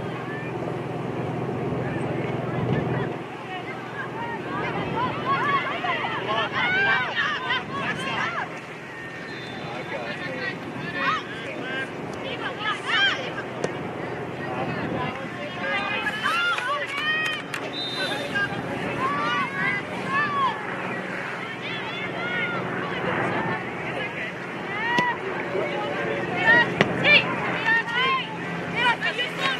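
Spectators shout and cheer from the sidelines outdoors.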